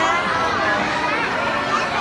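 A little girl sings out loudly close by.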